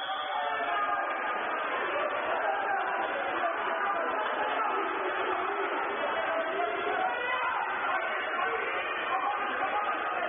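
Many voices shout and chatter, echoing around a large hall.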